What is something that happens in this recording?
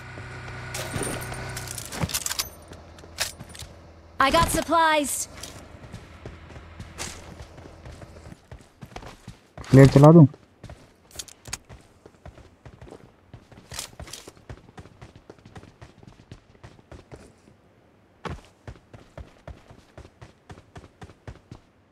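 Footsteps run across the ground in a video game.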